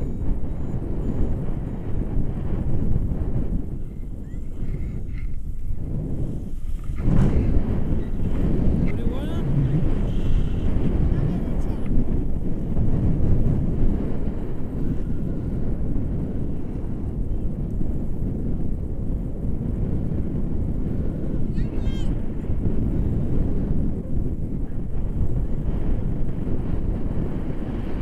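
Wind roars and buffets loudly past the microphone throughout.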